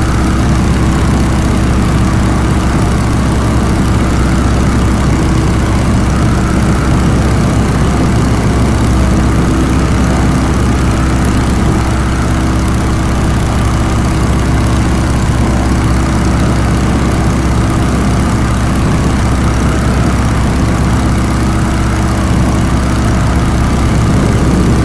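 Wind rushes past an open cockpit.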